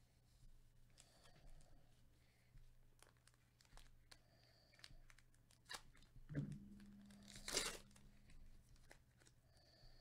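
Plastic wrapping crinkles and tears as hands open a pack.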